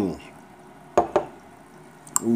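A glass is set down on a table with a knock.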